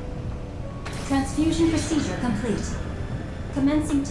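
A woman's voice makes an announcement over a loudspeaker.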